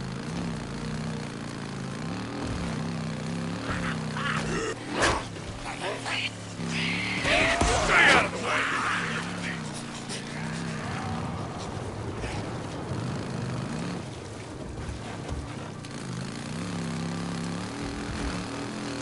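Tyres crunch over dirt and brush.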